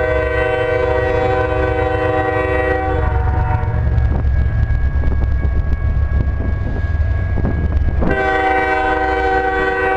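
A train horn blows loud and long, stops, then blows again.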